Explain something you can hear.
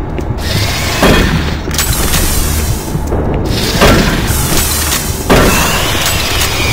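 A shotgun fires several blasts.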